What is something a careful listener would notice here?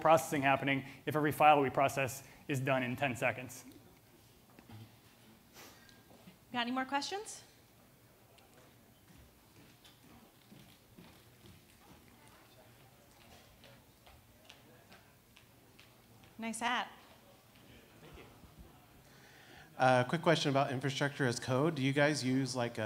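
A man speaks calmly into a microphone, with pauses, in a large echoing hall.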